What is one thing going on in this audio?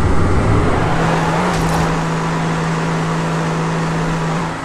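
A small car engine hums steadily.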